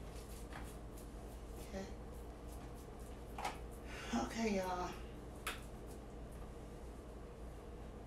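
Hands squish and knead raw ground meat.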